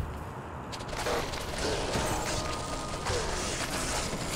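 Game combat sounds of blows and spells clash loudly.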